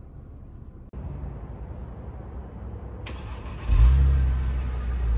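The exhaust of a Mercedes-Benz V6 sedan burbles at idle.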